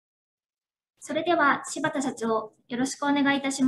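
A woman speaks formally through a microphone.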